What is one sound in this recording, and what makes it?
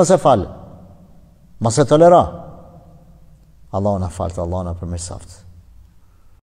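A middle-aged man speaks calmly and closely into a microphone, with pauses.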